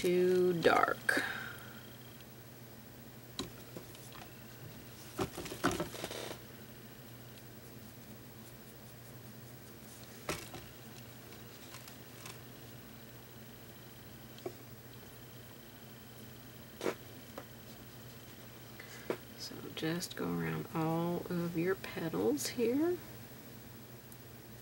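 A paintbrush brushes softly against a canvas.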